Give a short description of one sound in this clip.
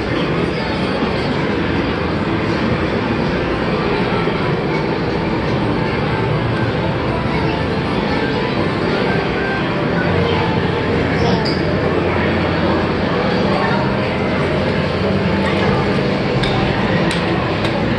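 Arcade machines play jingles and electronic music in a large, noisy hall.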